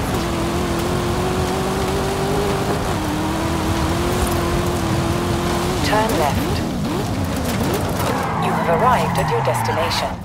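A sports car engine roars at high speed, then drops as the car slows.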